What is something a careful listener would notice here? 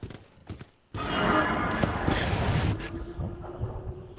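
A young man shouts excitedly close to a microphone.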